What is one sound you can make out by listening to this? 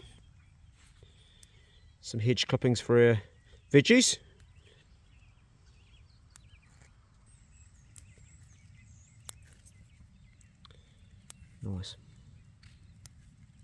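Small herb sprigs snap softly as fingers pinch them off.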